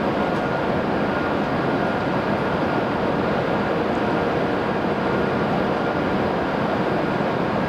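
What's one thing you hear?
A stationary train hums steadily with a loud, even rush of noise.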